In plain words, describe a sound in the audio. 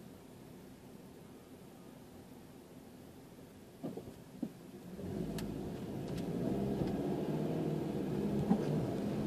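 A car engine idles quietly, then rumbles louder as the car pulls away.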